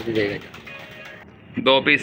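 A pigeon flaps its wings.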